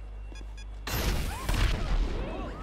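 A rocket launcher fires with a loud blast.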